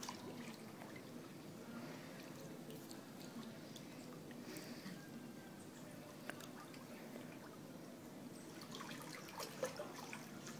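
Water laps gently in a pool as a floating body is drawn through it.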